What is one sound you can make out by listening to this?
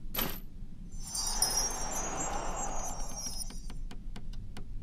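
A shimmering, sparkling whoosh rises and fades away.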